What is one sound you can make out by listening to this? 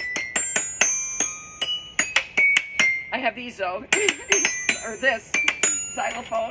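Small metal bars ring out as they are struck with mallets.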